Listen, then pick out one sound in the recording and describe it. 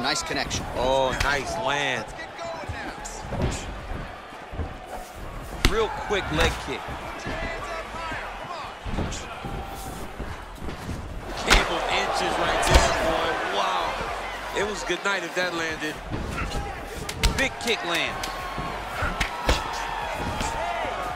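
Kicks and punches land with dull thuds.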